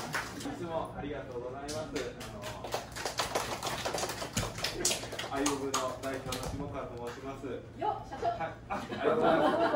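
A man speaks to a group, heard from a short distance.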